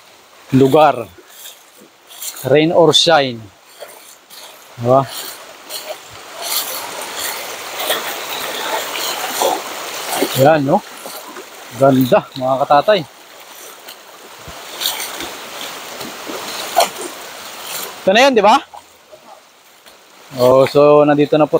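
Shallow water rushes and gurgles over stones in a stream.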